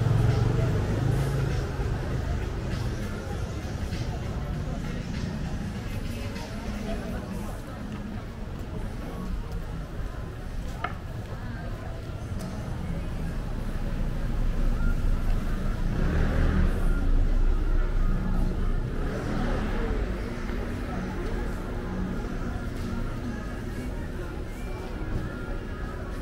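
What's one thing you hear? Traffic murmurs steadily along a busy street.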